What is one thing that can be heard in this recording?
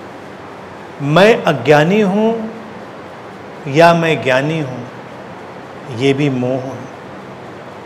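A man speaks calmly and thoughtfully into a nearby microphone, in short phrases with pauses.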